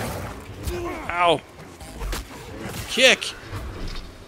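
A large creature snarls and roars.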